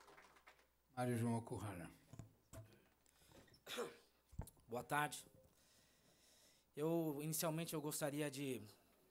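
A man speaks calmly into a microphone, heard over loudspeakers in a large room.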